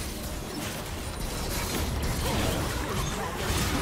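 Game characters' attacks clash with sharp hits.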